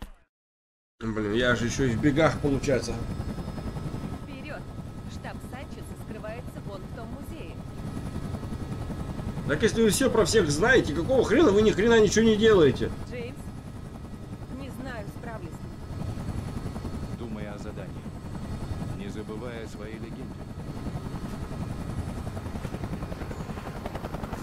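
A helicopter engine drones steadily.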